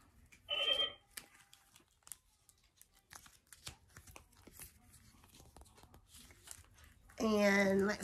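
Playing cards riffle and flick softly as they are shuffled.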